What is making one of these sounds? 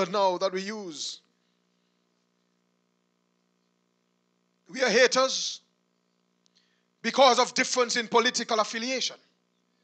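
A man preaches with animation into a microphone, heard through a loudspeaker, with long pauses between phrases.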